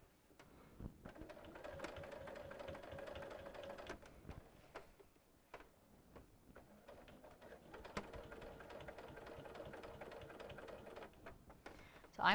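A sewing machine whirs steadily as it stitches.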